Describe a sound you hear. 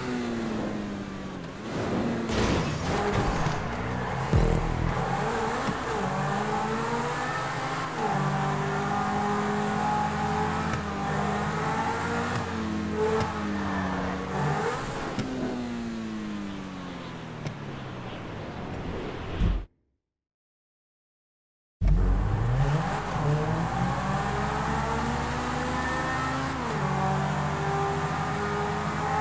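A racing car engine roars, revving up and down as gears shift.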